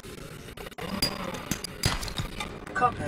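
A blade strikes rock with sharp knocks.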